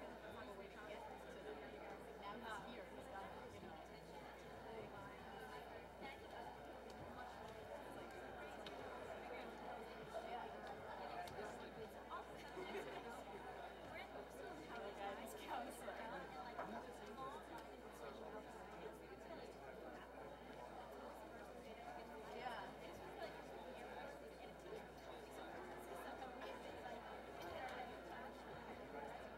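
An audience chatters and murmurs quietly in a large hall.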